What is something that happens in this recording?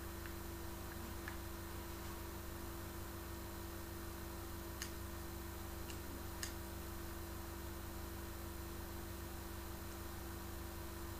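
Video game sound effects play through television speakers.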